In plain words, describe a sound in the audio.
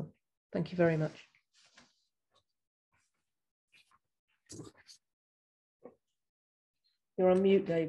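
An older woman speaks calmly and close by, in short bursts with pauses.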